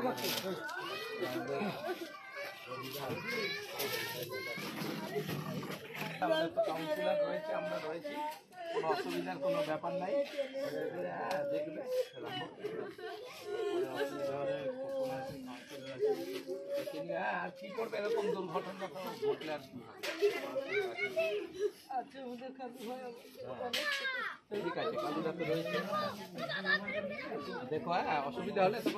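A man talks among a small group of people.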